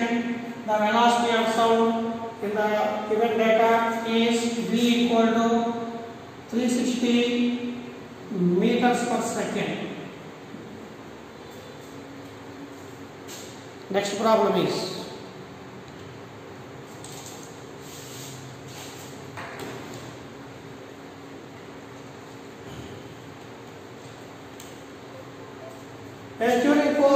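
A man speaks calmly and clearly close by, explaining.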